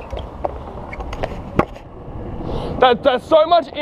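Scooter wheels roll and rattle over rough concrete.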